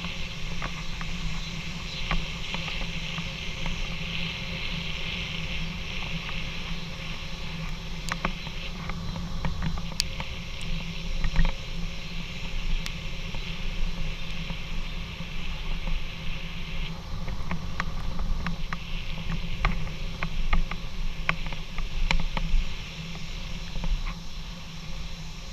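Tyres roll with a hum over rough asphalt.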